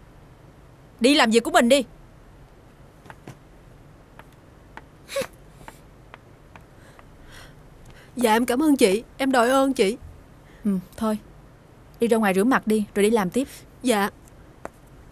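Another young woman speaks sharply, close by.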